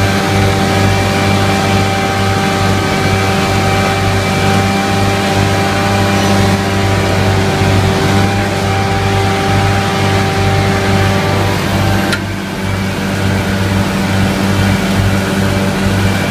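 A mower blade whirs through grass.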